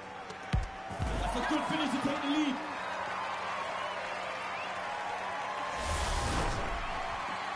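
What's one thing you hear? A crowd cheers loudly.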